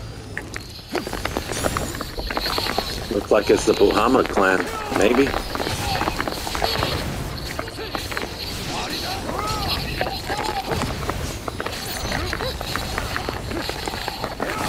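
Blades swing and strike with sharp hits.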